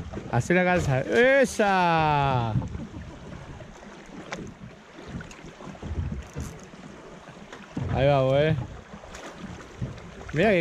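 Water splashes against the side of a small boat.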